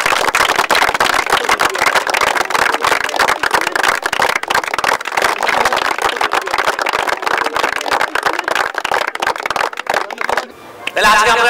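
A crowd applauds loudly outdoors.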